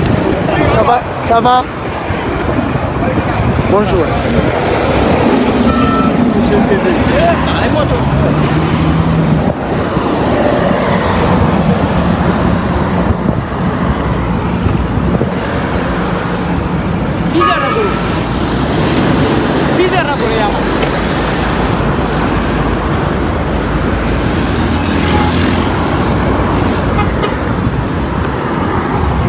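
Traffic hums along the road outdoors.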